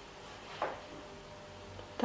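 A hand brushes lightly against paper.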